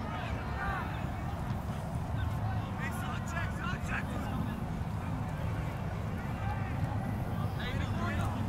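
Young men shout to each other across an open field, some way off.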